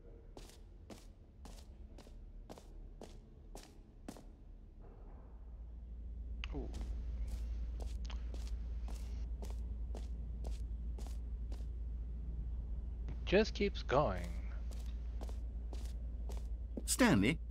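Footsteps tap on a hard concrete floor at a steady walking pace.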